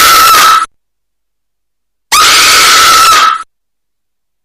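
A young girl lets out a loud, harsh shriek.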